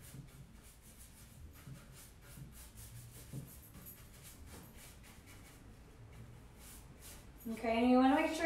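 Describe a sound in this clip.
A paintbrush dabs and brushes softly against wood.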